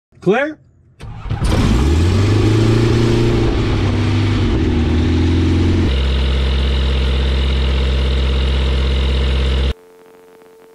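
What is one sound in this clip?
A small plane's propeller engine starts and runs with a loud steady drone.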